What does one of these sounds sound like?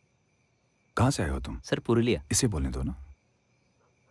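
A younger man speaks in a friendly way, close by.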